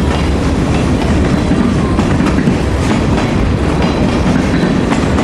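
A freight train rumbles past with a steady heavy roar.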